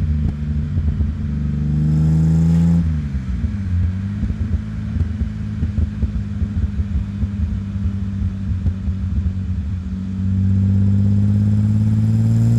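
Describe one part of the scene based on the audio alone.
A car engine hums close by, revving up and easing off.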